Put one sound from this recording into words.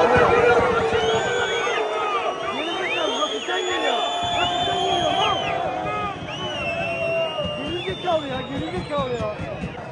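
A spectator claps hands close by.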